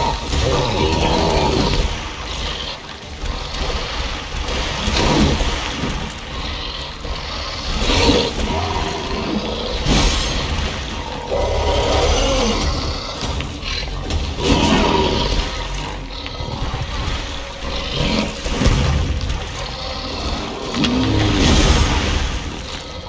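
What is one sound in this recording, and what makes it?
A sword slashes and strikes a hulking creature in quick blows.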